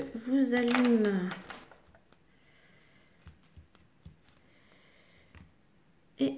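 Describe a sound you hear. A plastic sheet crinkles softly under a hand.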